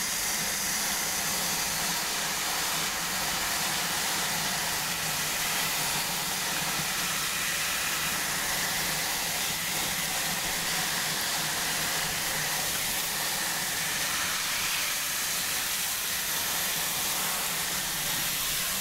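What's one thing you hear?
Water sprays steadily from a shower head onto wet hair.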